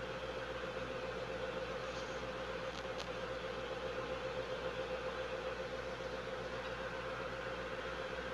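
A tank engine rumbles steadily as it drives.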